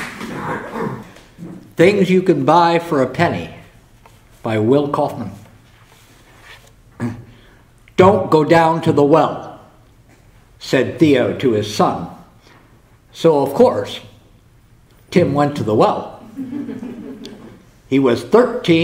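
An elderly man reads out calmly through a microphone.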